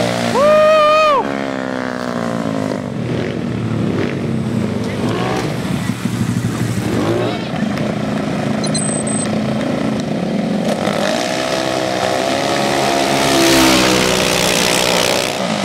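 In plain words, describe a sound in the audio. Small motorcycle engines rev and roar loudly.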